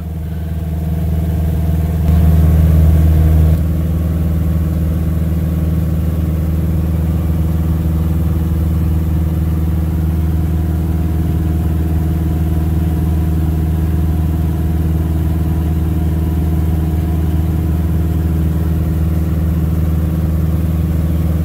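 A small plane's propeller engine drones steadily and loudly close by.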